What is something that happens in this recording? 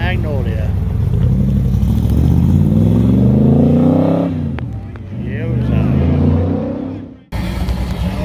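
A sports car engine revs up and roars as the car pulls away.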